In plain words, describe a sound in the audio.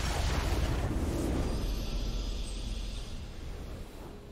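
A triumphant fanfare swells.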